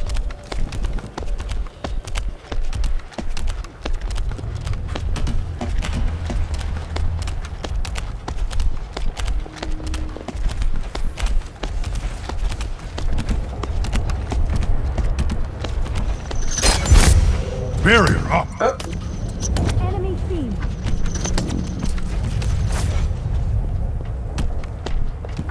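Quick footsteps patter steadily on hard ground.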